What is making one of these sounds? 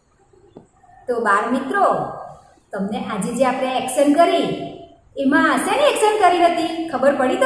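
A woman speaks cheerfully, close by.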